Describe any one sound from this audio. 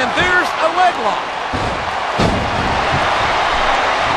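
A body slams hard onto a wrestling ring mat with a thud.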